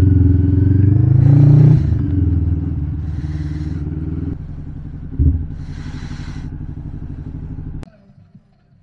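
A motorcycle engine rumbles loudly at low speed.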